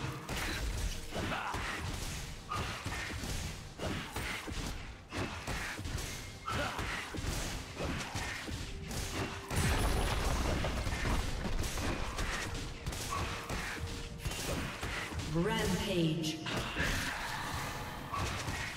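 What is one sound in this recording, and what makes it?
Game combat sound effects clash and crackle as figures fight.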